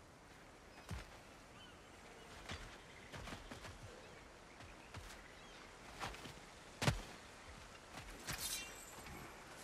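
Heavy footsteps crunch on stone and earth.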